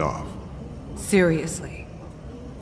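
A woman asks a question in disbelief.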